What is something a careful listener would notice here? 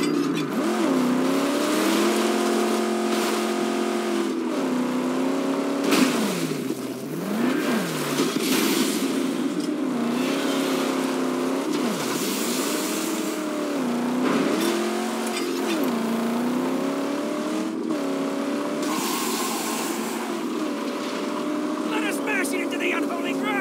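A car engine roars and revs up and down throughout.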